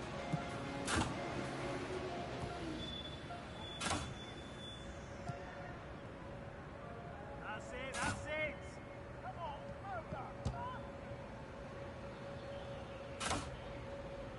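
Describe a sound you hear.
A football is kicked with a sharp thud, several times.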